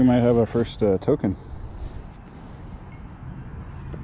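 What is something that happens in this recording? Gloved fingers rub and crumble dry soil.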